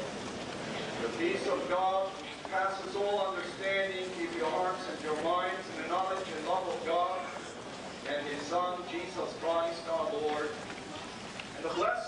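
A man speaks in a slow, chanting voice through a loudspeaker in a large echoing hall.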